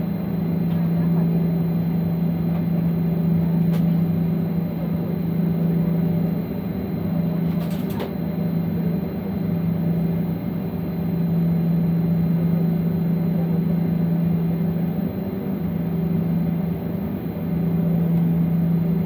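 A jet engine drones steadily, heard from inside an aircraft cabin.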